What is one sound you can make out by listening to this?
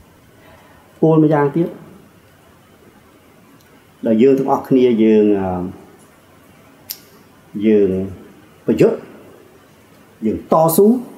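A middle-aged man speaks slowly and earnestly into a microphone, with pauses between phrases.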